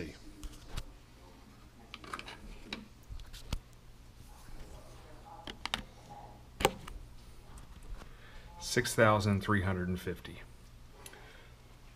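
Small plastic devices knock and clatter on a table.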